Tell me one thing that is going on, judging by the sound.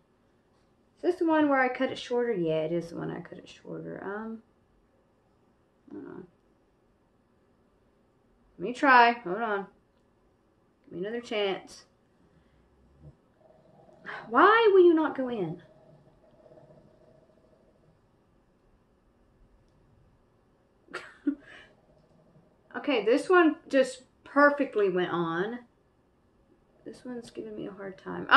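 A young woman talks calmly and close by, in short bursts with pauses.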